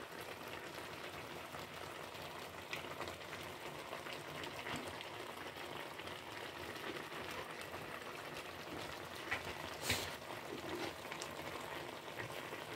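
Seafood sizzles and crackles steadily in a hot pan.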